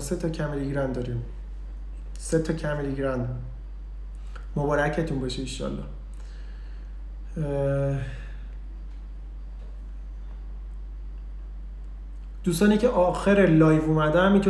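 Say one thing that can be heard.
A young man talks calmly and close up, pausing between phrases.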